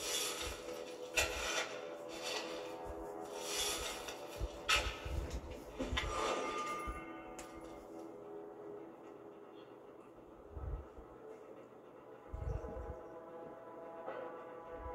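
Game music plays from a television.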